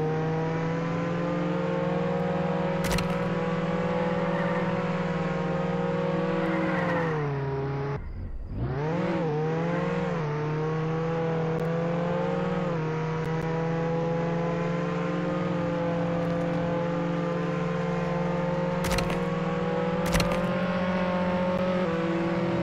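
A car engine hums steadily at high speed, dipping as the car slows and then revving back up.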